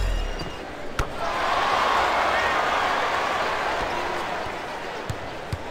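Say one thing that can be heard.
A crowd cheers loudly in a large arena and slowly dies down.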